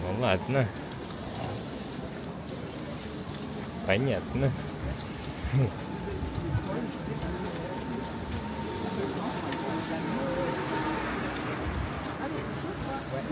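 City traffic hums steadily in the distance.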